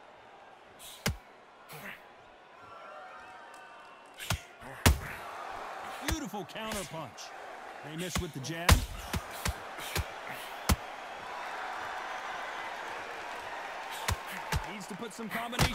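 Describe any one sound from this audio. Gloves thud heavily as punches land.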